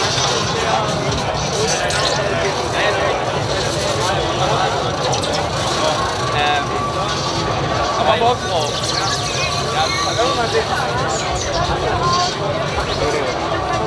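A large crowd of young men and women chatters and calls out loudly outdoors.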